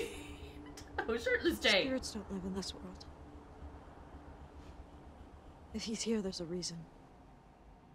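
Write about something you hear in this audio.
A young woman speaks quietly and sadly.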